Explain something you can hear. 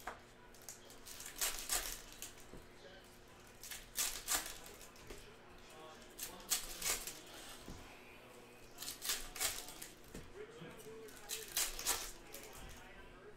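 Foil card wrappers crinkle and tear.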